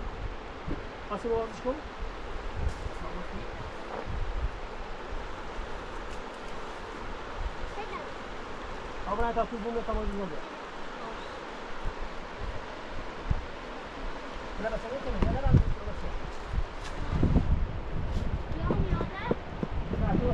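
A woman talks calmly at a distance.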